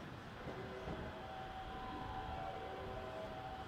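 Train brakes squeal softly as the train slows.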